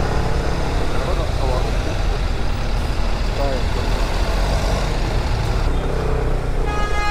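A scooter engine hums steadily up close.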